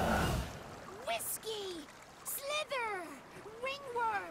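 A woman exclaims excitedly in a shrill, rising voice.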